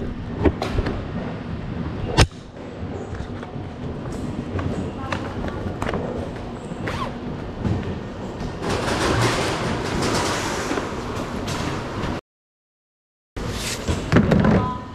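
Murmur and footsteps echo through a large hall.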